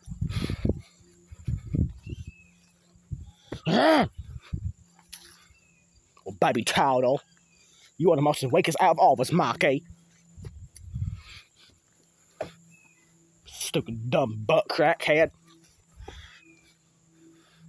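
A soft toy lands with a dull thump on grass.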